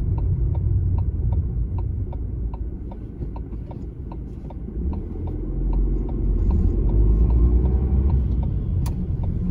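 A car's turn signal ticks steadily, then stops.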